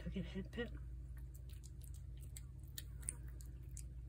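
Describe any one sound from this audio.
A cat chews and laps wet food with soft wet clicks.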